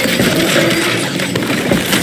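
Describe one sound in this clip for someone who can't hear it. A burst of energy crackles and roars.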